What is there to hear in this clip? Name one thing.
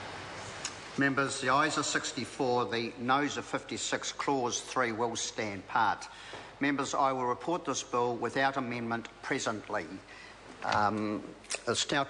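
An elderly man speaks calmly and formally through a microphone in a large room.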